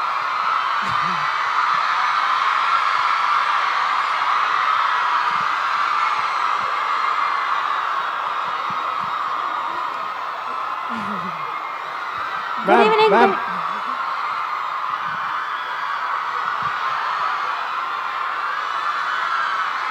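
A large crowd cheers and applauds in a big hall.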